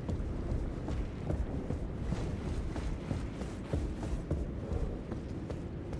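Footsteps clatter quickly on a stone floor.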